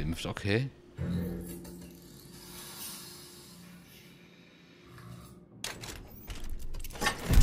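An elevator rumbles and whirs as it moves.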